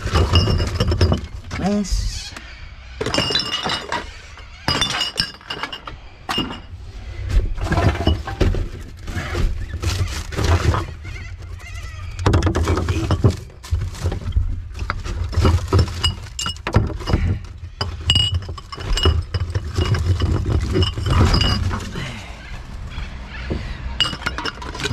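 Glass bottles clink and rattle against each other as they are handled.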